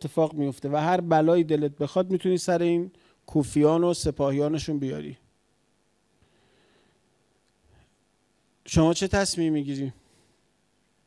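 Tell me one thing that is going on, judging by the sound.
A middle-aged man speaks with animation into a microphone, close by, with pauses.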